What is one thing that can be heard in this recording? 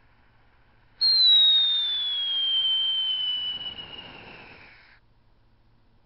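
A firework shoots off with a high whistling screech that slowly falls.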